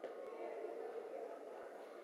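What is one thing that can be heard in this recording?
A page of a spiral-bound book is turned by hand.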